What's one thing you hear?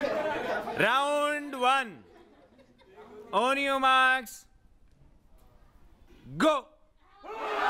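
A man calls out loudly in long, drawn-out cries.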